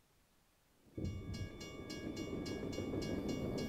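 A railway crossing bell rings rapidly.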